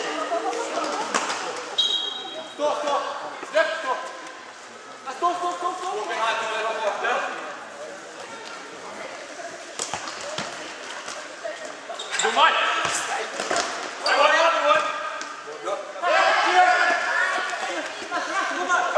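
Young men shout to one another across an echoing hall.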